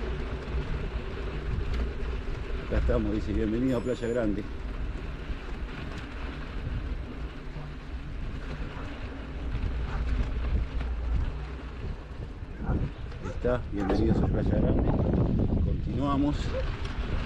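A vehicle drives slowly over a rough dirt road.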